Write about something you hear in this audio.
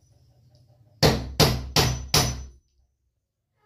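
Sharp knocks strike a wooden door in quick succession.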